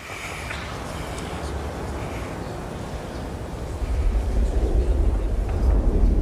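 A distant explosion booms and rumbles on.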